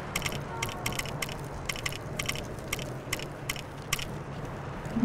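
Short electronic menu clicks tick in quick succession.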